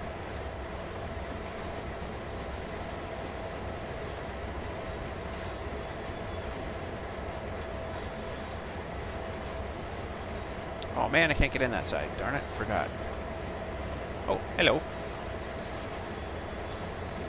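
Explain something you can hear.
Train wheels roll and clatter on the rails.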